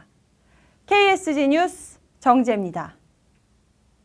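A young woman speaks clearly and brightly into a microphone.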